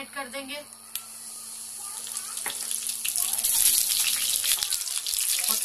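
Leaves sizzle loudly as they drop into hot oil.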